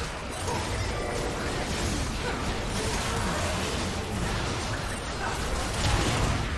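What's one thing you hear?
Magic spells crackle and blast in a hectic battle.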